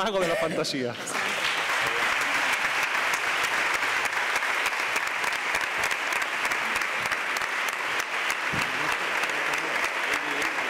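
A crowd applauds steadily in a large hall.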